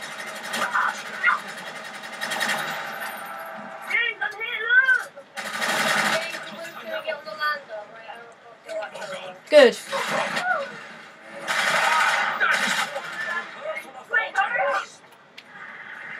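Gunfire and explosions from a video game boom through a television speaker.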